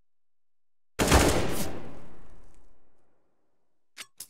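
A rifle fires a short burst of loud shots that echo away.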